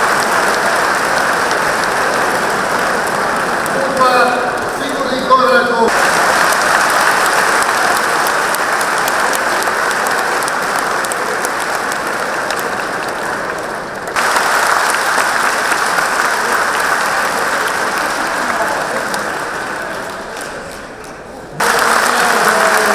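A large crowd cheers and roars in a big echoing arena.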